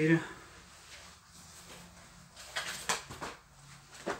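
Fabric rustles as hands handle clothes.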